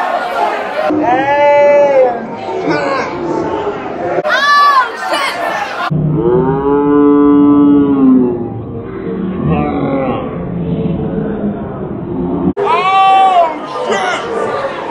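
A young woman screams with excitement close by.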